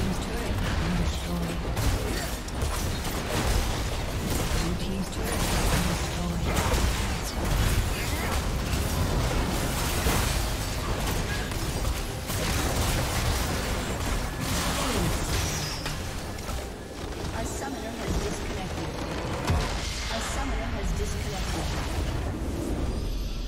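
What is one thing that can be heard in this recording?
Video game spell blasts and clashing blows ring out rapidly.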